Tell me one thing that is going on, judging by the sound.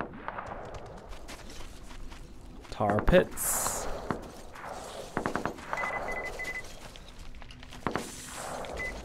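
Footsteps crunch on dry gravelly ground.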